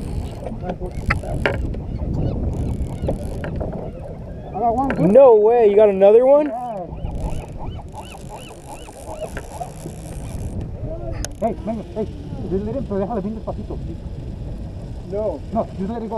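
A fishing reel clicks and whirs as its handle is cranked.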